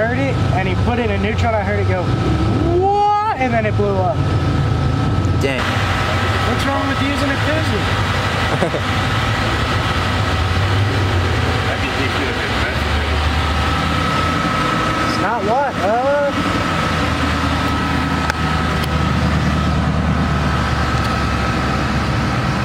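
A car engine idles steadily.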